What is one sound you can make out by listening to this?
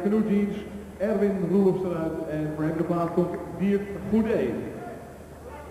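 A large crowd chants loudly in an echoing hall.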